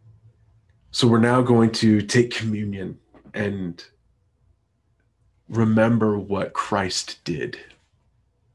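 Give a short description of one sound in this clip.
A man talks with animation over an online call, close to the microphone.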